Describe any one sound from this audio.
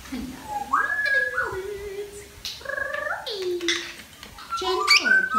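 An African grey parrot whistles and chatters in sliding tones.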